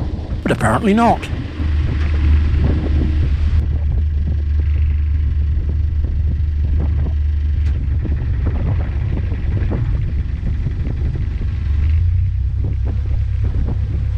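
A boat engine hums steadily with a low drone.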